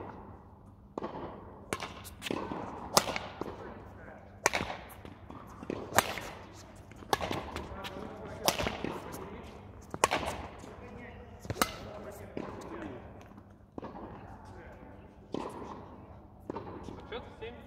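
Badminton rackets smack a shuttlecock back and forth.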